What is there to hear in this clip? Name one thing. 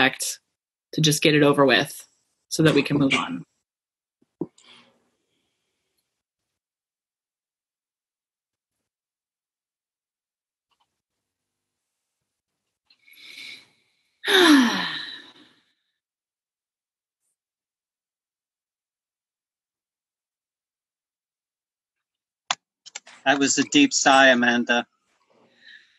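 A man speaks in short bursts over an online call.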